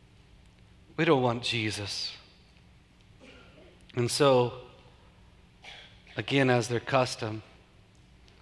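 A middle-aged man speaks calmly into a microphone, with pauses between phrases.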